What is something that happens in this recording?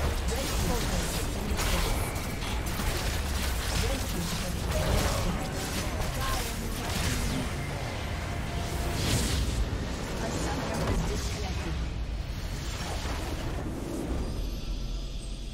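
Game spells and explosions crash and boom in quick succession.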